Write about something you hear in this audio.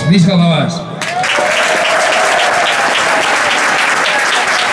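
A crowd applauds.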